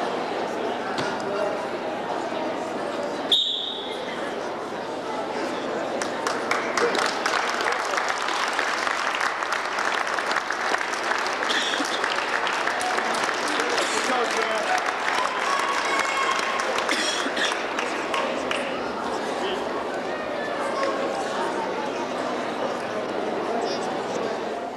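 A crowd cheers and shouts in an echoing gym.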